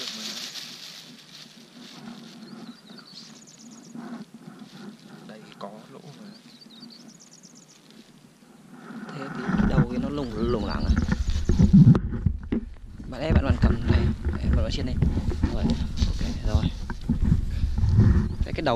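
A plastic bag rustles and crinkles up close.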